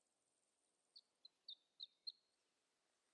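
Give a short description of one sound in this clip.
Soft, short game chimes blip a few times.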